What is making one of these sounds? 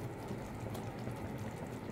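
A wooden spoon stirs and scrapes through a thick sauce in a metal pot.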